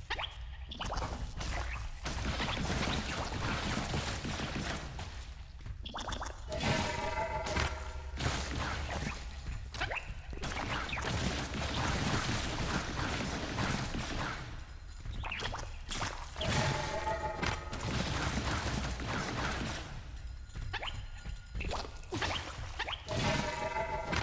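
Rapid blaster shots fire and crackle in a video game.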